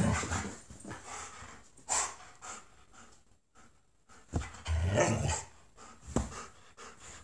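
A husky howls and yowls close by.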